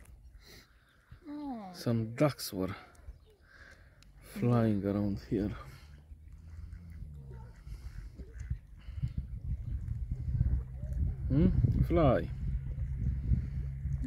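Water laps gently at a grassy shore.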